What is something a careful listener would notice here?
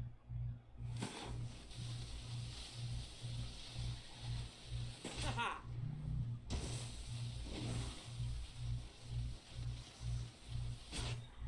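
A snowboard slides and scrapes over snow.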